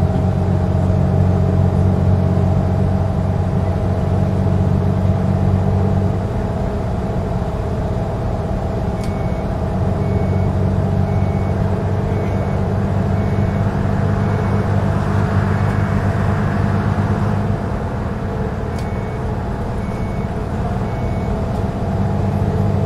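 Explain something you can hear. A bus engine hums steadily at low pitch.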